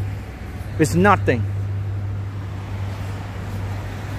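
A man's footsteps tap on a pavement nearby.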